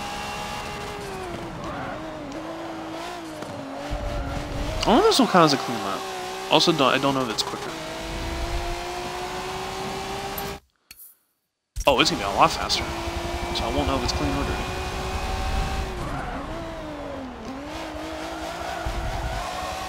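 A racing car engine drones and revs up and down.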